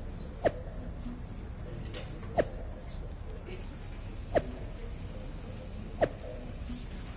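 A game menu gives short ticks as it scrolls.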